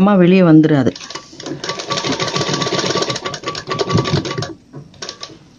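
A sewing machine runs with a fast, steady whirr.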